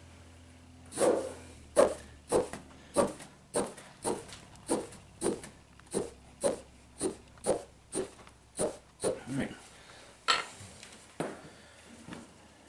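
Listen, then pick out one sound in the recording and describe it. A needle and thread pull through stiff canvas in a steady rhythm.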